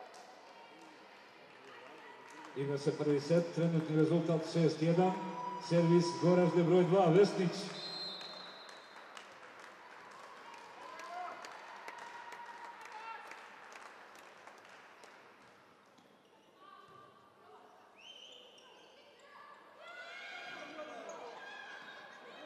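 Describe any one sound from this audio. A volleyball is struck with sharp smacks in a large echoing hall.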